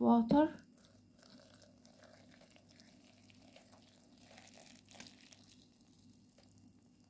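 Water pours into a plastic container.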